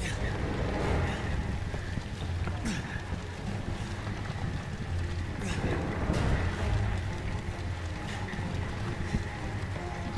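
A monstrous creature growls with a deep, rumbling breath.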